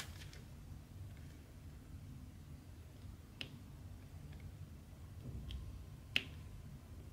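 A pen tool taps small beads onto a sticky canvas with soft clicks.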